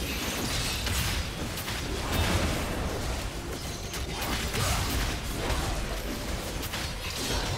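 Video game combat sound effects clash and crackle.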